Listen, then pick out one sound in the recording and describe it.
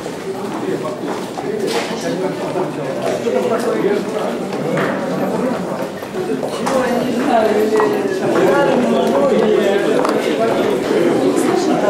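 Footsteps shuffle down a stairwell.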